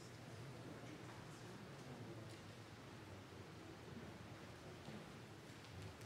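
A seated crowd murmurs softly in a large echoing hall.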